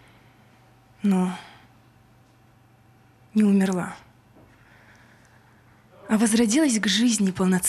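A young woman speaks into a microphone close by, in short bursts.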